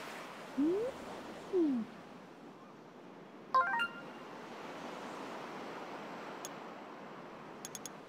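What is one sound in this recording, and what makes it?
Soft wind blows steadily outdoors.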